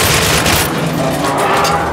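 A pistol fires with a loud burst.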